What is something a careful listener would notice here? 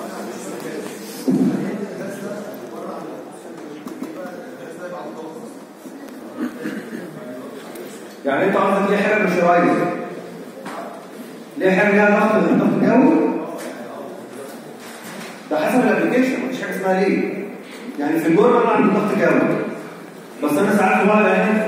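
A young man speaks with animation into a microphone, heard through a loudspeaker in an echoing room.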